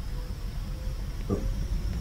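Electricity crackles and buzzes between machines.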